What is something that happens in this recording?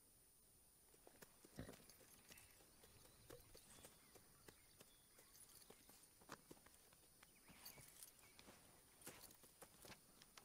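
A horse's hooves clop slowly on dirt.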